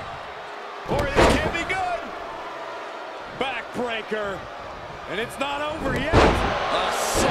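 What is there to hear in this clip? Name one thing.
Bodies slam heavily onto a wrestling ring mat.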